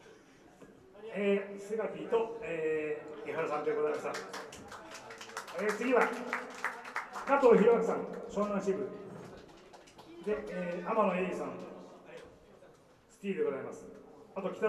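A man speaks through a microphone in a loud, lively voice.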